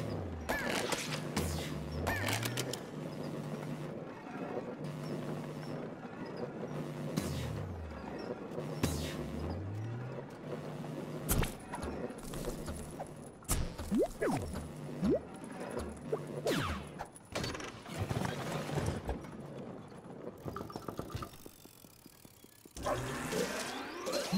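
Playful, tinkling game music plays.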